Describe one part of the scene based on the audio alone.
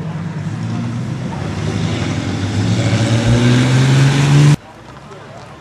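A car engine revs up and accelerates away.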